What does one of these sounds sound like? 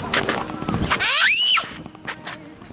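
A young girl squeals with delight.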